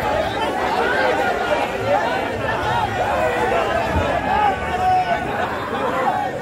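A large crowd of men shouts outdoors.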